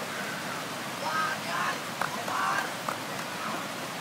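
Children shout and call out in the water at a distance.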